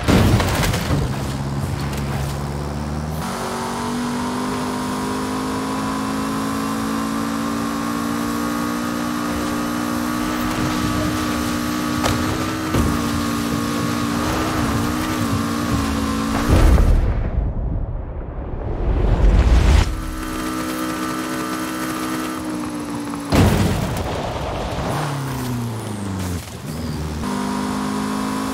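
A car engine roars at high revs, rising and falling as gears shift.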